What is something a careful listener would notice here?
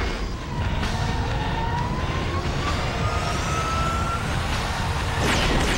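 An aircraft engine whines as it rises.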